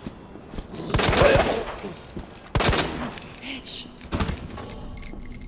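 Pistol shots bang loudly, one after another, and echo.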